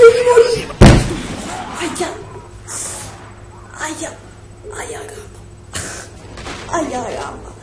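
A young man shouts and laughs excitedly close to a microphone.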